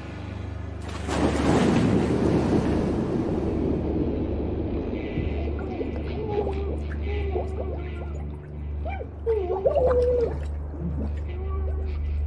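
Water rushes and bubbles close by.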